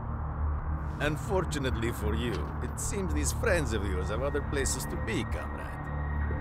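A middle-aged man speaks calmly and menacingly, close by.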